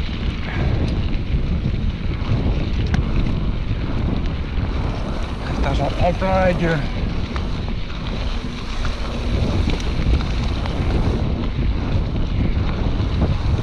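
Bicycle tyres crunch and rumble over a gravel track.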